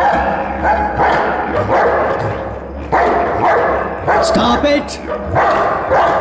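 A dog barks and snarls fiercely.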